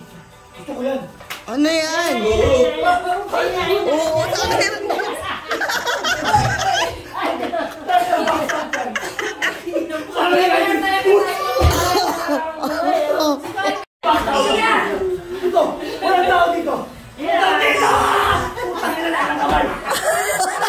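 A group of men and women shout and laugh excitedly nearby.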